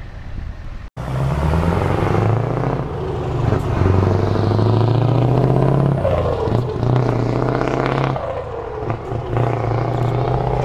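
A heavy truck engine rumbles loudly close by and slowly passes.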